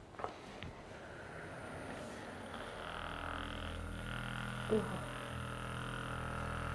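A massage gun buzzes steadily.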